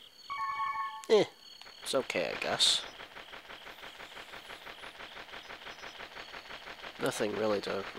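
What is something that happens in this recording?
Twinkling magical chimes sparkle.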